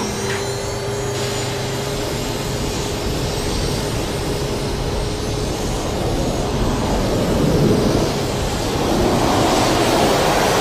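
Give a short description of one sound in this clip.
A large fire roars steadily.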